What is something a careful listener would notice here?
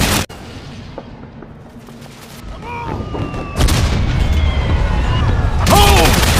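Rifles crack in scattered shots.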